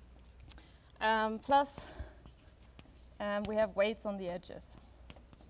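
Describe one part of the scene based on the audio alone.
A young woman speaks clearly.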